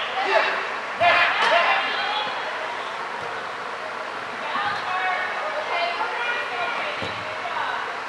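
A ball is kicked with a dull thump.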